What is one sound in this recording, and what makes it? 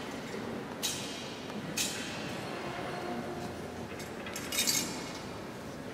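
A metal censer clinks on its chains as it swings in a large echoing hall.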